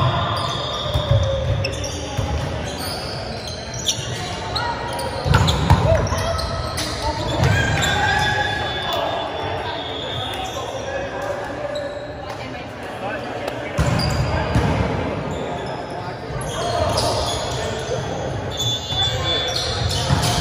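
Young men and women call out and chatter across a large echoing hall.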